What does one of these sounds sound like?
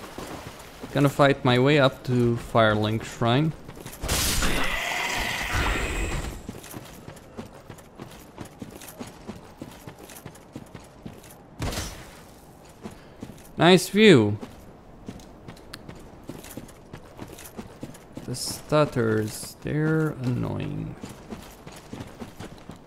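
Footsteps patter quickly on stone and gravel.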